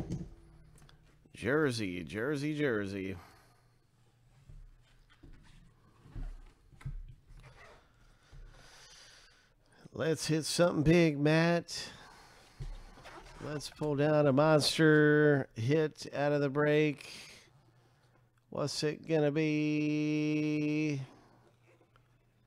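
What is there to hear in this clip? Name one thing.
A cardboard box scrapes and rustles as hands handle and open it.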